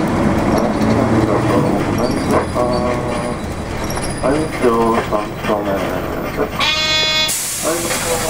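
A car engine hums as traffic drives past nearby.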